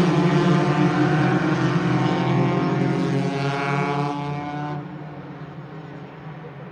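Racing car engines roar loudly as they speed past and then fade into the distance.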